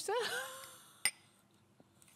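Two glasses clink together.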